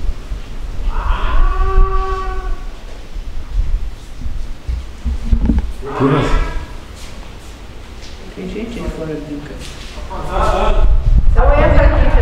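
A woman speaks nearby in a calm, low voice.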